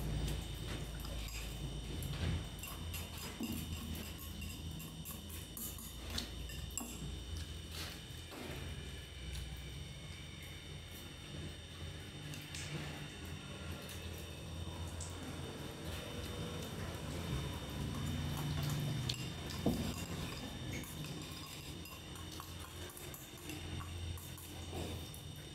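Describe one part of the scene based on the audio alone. A young woman slurps from a bowl.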